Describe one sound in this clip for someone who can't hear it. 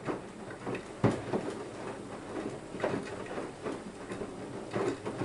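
Water and laundry slosh and thump inside a washing machine drum.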